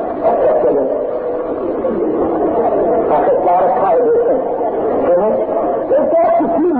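A man speaks with animation through a loudspeaker, heard on an old, muffled recording.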